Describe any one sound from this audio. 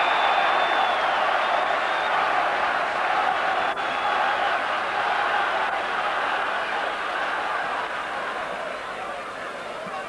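A large stadium crowd roars and chants steadily in the distance.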